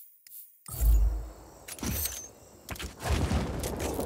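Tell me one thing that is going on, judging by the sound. A parachute canopy flutters and snaps open.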